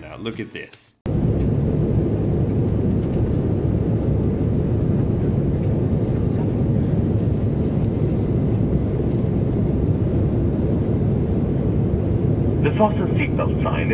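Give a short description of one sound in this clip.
A jet engine roars steadily, heard from inside an airplane cabin.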